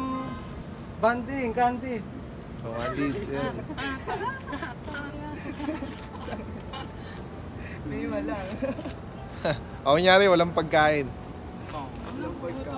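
Teenagers talk and laugh nearby.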